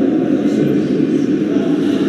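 A man talks on a phone close by.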